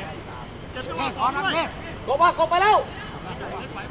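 A young man calls out loudly.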